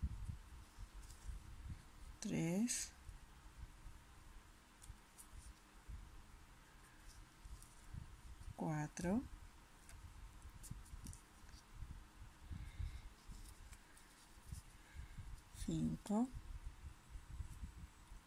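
A crochet hook softly rubs and ticks against yarn.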